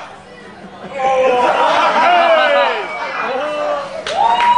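An audience cheers and claps.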